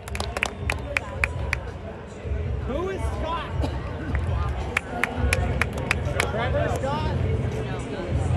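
A large crowd murmurs outdoors in a big stadium.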